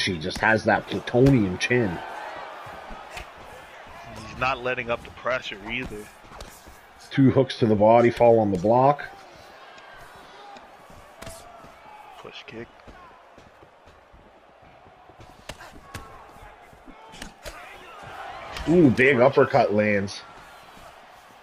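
Punches and kicks thud against a fighter's body.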